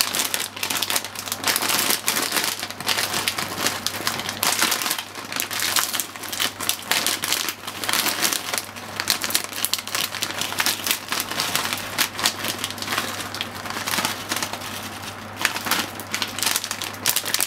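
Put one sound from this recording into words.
Corn kernels patter softly onto food.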